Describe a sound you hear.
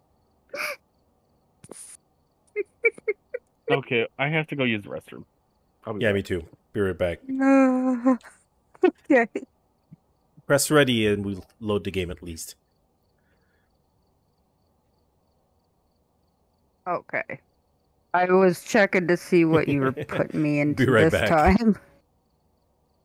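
A man talks with animation into a close microphone, with pauses.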